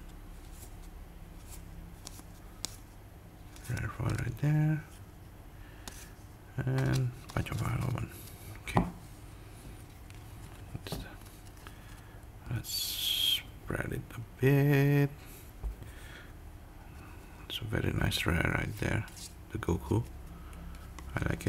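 Playing cards slide and flick against each other in hands.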